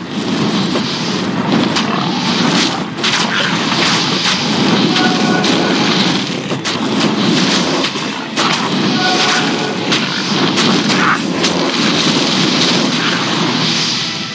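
Fireballs whoosh and burst.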